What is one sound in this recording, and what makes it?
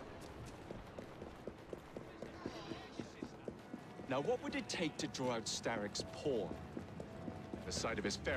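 Quick footsteps run over cobblestones.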